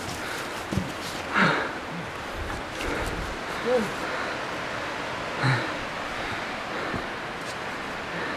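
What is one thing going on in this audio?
Footsteps crunch on dry leaves and rocks.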